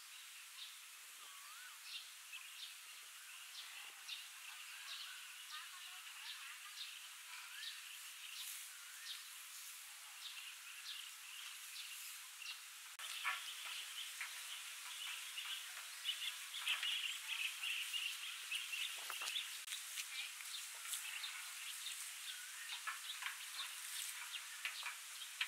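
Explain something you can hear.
Wooden frames knock and scrape against a metal drum.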